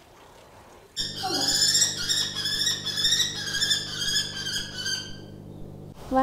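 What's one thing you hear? A kestrel calls with rapid shrill cries.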